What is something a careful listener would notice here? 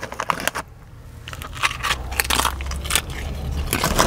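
A man crunches on food while chewing.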